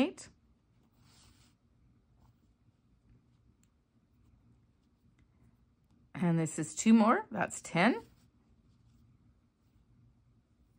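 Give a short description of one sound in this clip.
Yarn rustles softly as a crochet hook pulls it through stitches.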